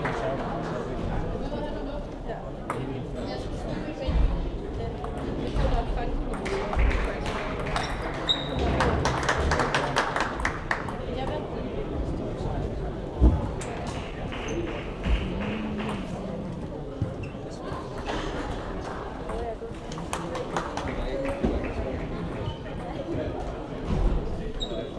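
A crowd murmurs in the background of a large hall.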